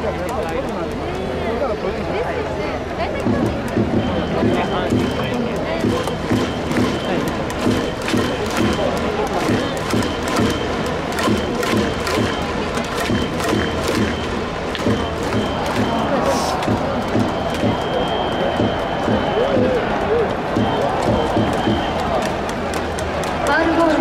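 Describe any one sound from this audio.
A large crowd in a stadium chants and claps in rhythm.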